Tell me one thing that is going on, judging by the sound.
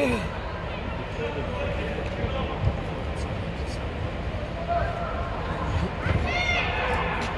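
Young players shout to each other in a large echoing dome.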